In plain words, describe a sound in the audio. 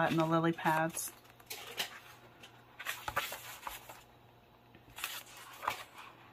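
Paper pages rustle and flip quickly.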